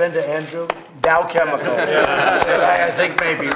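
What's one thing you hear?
A group of people applauds.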